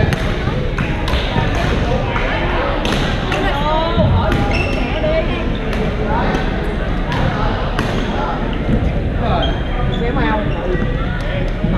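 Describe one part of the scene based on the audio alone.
Shoes squeak on the floor in a large echoing hall.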